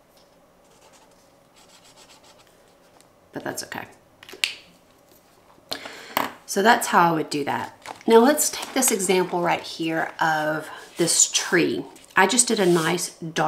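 Paper rustles as a sketchbook is moved.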